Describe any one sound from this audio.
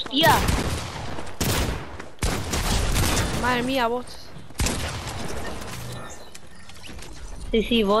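A pickaxe strikes a wooden wall with loud knocks.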